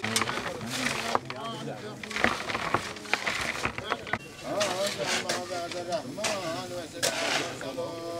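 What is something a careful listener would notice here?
Shovels scrape and dump soil.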